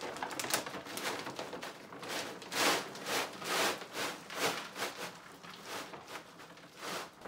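Dry kibble pours and rattles into a plastic bin.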